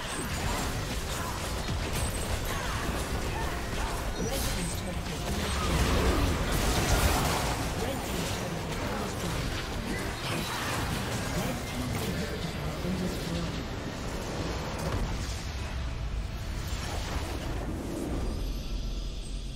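Spell effects crackle and blast in a busy video game battle.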